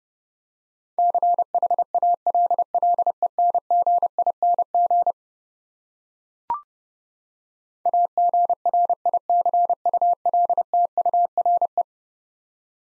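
A Morse code key beeps out a steady high tone in quick dots and dashes.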